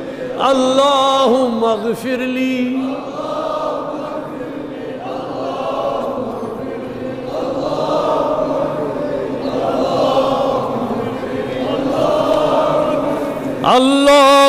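A crowd of men murmurs prayers in response.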